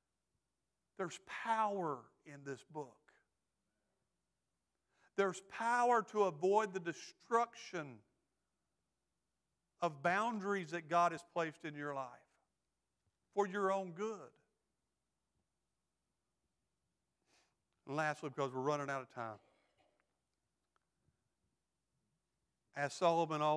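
A middle-aged man speaks slowly and earnestly through a microphone, with long pauses.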